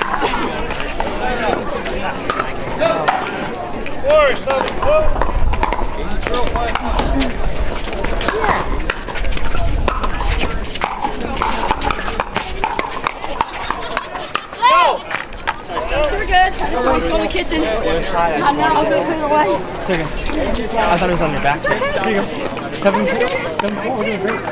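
Paddles hit a plastic ball with sharp hollow pops.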